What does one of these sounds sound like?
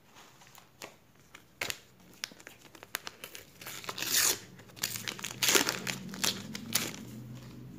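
A foil sticker packet crinkles and tears open.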